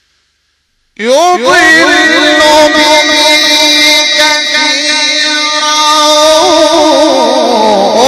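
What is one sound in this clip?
A man chants loudly through a microphone and loudspeakers, with a melodic voice.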